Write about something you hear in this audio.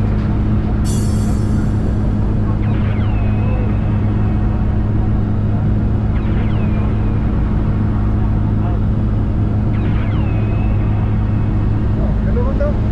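An aircraft engine drones loudly and steadily.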